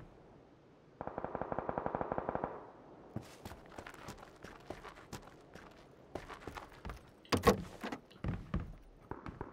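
Footsteps patter quickly on the ground and thud on wooden boards.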